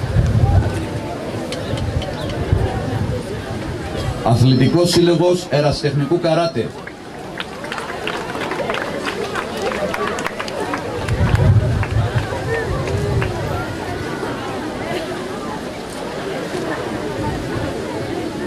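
A crowd murmurs outdoors in wind.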